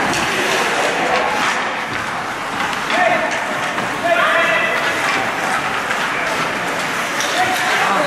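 Ice skates scrape and carve across an ice rink.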